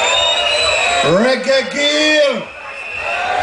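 A man sings into a microphone over loudspeakers.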